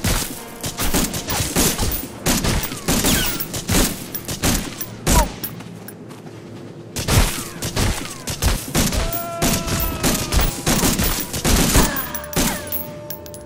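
A rifle fires repeated bursts of sharp shots.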